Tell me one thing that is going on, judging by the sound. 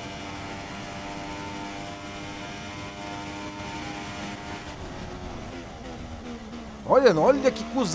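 A racing car engine whines steadily at high speed.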